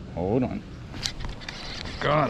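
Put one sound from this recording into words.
A fishing lure splashes into the water.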